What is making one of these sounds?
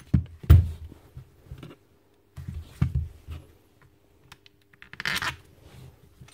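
Metal tools clatter and knock on a hard surface.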